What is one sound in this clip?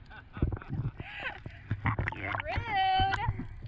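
A young girl makes muffled sounds through a snorkel.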